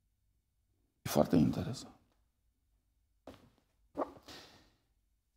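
A middle-aged man speaks with emphasis through a microphone in a reverberant hall.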